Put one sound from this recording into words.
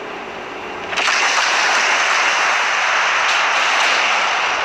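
Naval guns fire with heavy booms.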